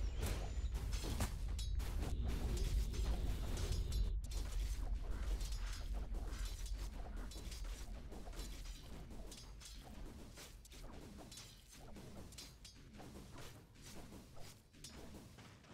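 Fantasy battle sound effects clash and crackle.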